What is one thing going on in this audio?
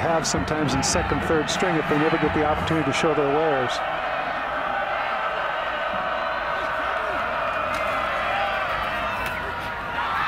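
A large crowd cheers loudly in an open stadium.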